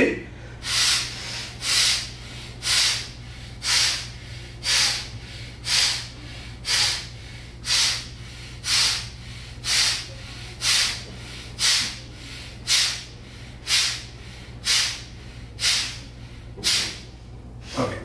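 A man breathes out sharply through his nose in a quick, steady rhythm.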